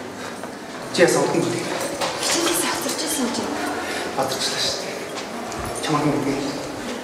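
A young man talks cheerfully close by.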